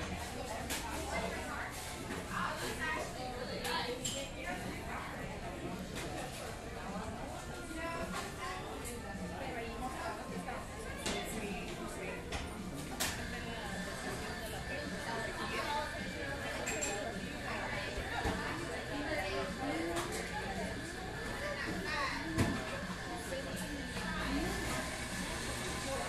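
Many people chatter indistinctly in a busy room.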